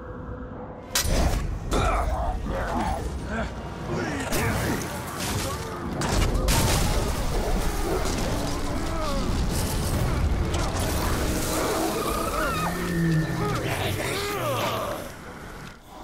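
Blades clash and strike in a fast fight.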